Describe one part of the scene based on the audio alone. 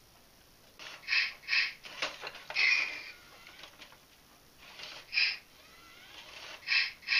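A toy robot dinosaur whirs and clicks as it walks.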